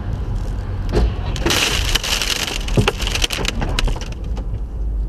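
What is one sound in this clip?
Cars crash with a loud bang and crunch of metal.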